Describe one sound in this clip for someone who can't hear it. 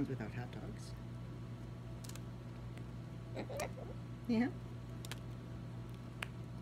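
An umbrella cockatoo chews and bites into a bread bun.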